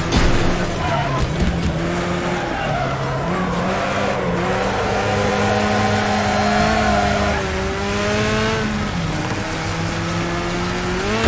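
A car engine revs and whines, rising and falling as gears shift.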